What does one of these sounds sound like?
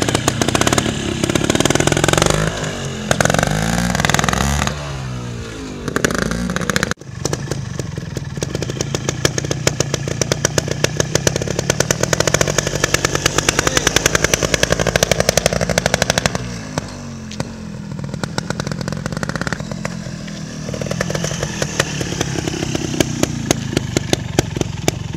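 A small two-stroke motorcycle engine putters close by with rapid popping.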